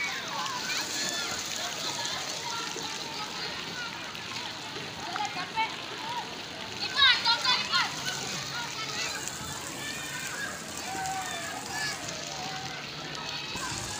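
Water splashes as children play in a pool.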